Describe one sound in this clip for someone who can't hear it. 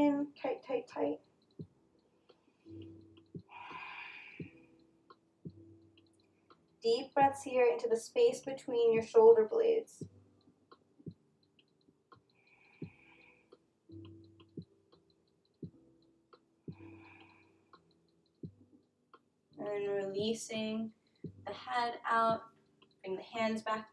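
A woman speaks calmly and softly into a nearby microphone, with pauses.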